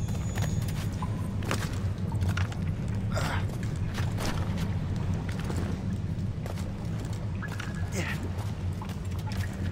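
Hands and feet scrape and thud on rock while climbing.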